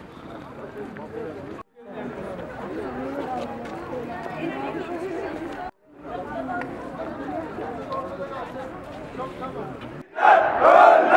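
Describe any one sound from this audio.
A crowd of marchers talks and murmurs outdoors.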